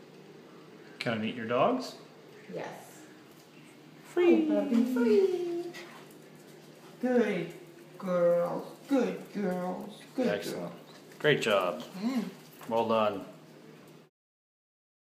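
Small dogs bark and yap close by.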